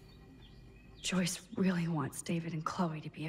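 A young woman speaks close into a microphone.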